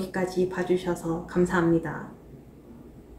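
A young woman speaks brightly and close to the microphone.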